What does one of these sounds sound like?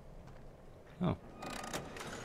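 A lever switch clanks.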